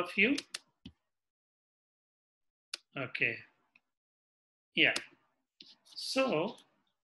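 A man speaks calmly in short phrases through an online call microphone.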